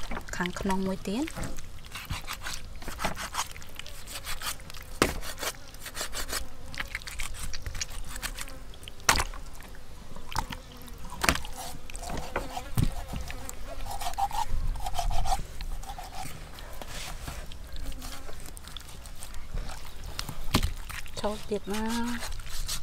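A cleaver chops and scrapes on a wooden board.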